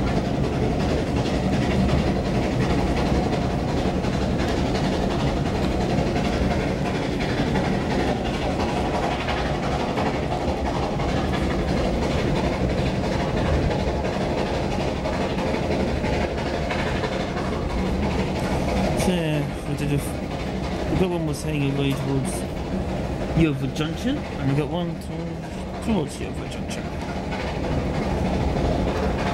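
A train rumbles steadily along the tracks, heard from inside a carriage.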